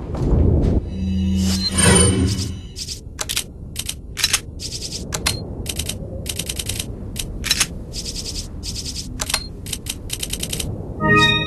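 Menu selections in a game click and beep in quick succession.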